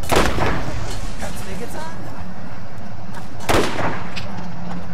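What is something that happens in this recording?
A sniper rifle fires loud shots.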